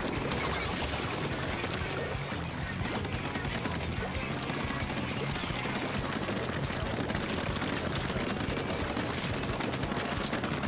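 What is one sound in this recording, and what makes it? Ink sprays and splatters in quick bursts.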